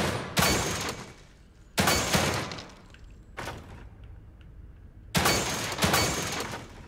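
Gunshots fire in short bursts, each followed by ringing echoes.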